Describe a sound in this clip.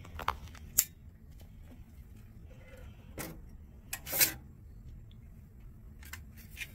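Metal drive caddies clatter and click as they are handled.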